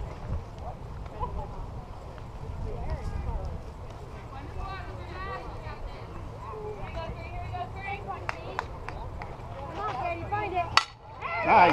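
Young women on the field call out and chatter.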